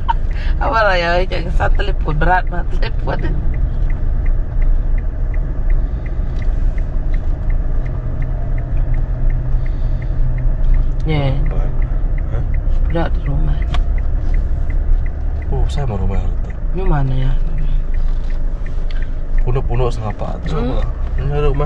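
A car's engine and tyres rumble low inside the car while driving.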